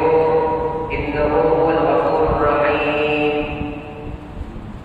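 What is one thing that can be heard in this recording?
A man chants through a loudspeaker in a large echoing hall.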